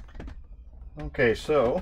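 A middle-aged man speaks up close.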